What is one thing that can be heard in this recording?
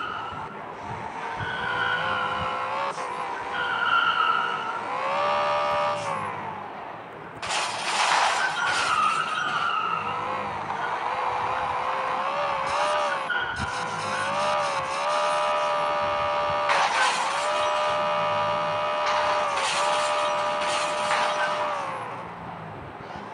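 A car engine revs up and down repeatedly.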